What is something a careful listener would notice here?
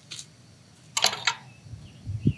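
A wooden gate latch clicks.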